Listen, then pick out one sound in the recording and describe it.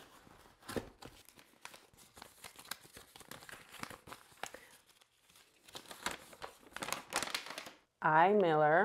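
Paper crinkles and rustles as it is unfolded.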